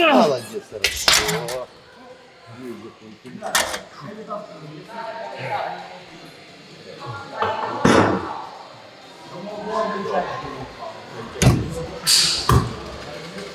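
Weight plates clank against a machine.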